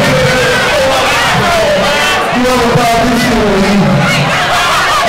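A crowd cheers and shouts in a large echoing room.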